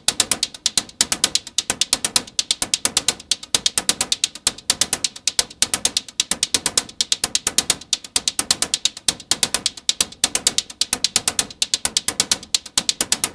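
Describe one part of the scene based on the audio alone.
Electronic synthesizer music plays a fast, steady, clicking rhythm.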